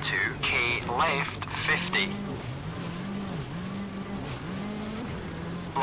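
A rally car engine drones and revs up and down.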